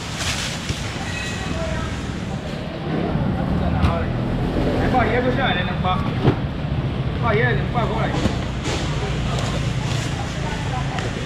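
Several people talk and murmur in the background of a busy, echoing space.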